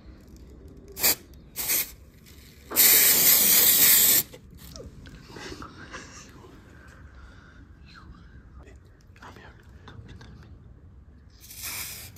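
An aerosol can sprays in short hissing bursts and one long hiss.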